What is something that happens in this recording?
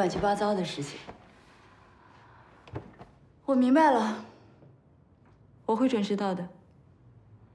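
A young woman talks on a phone close by, with animation.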